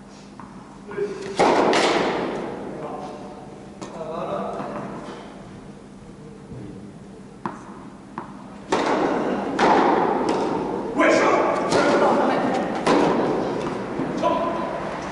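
Tennis balls are struck with rackets, echoing in a large hall.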